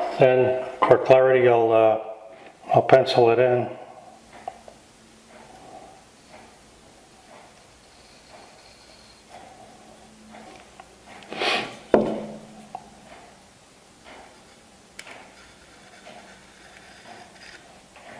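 A pencil scratches lightly on wood.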